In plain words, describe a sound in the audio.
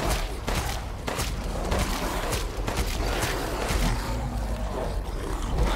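Shotgun blasts boom in quick succession.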